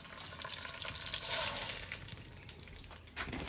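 Rice grains pour into hot oil and sizzle.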